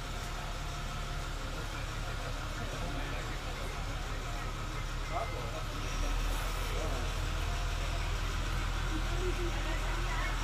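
A boat's engine rumbles steadily.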